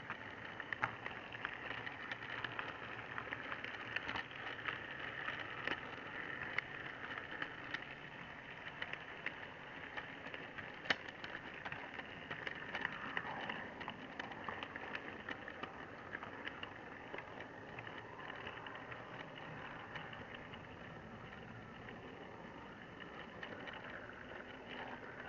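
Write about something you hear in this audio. Model train wheels click over rail joints.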